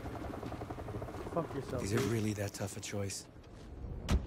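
A man speaks in a low, tense voice.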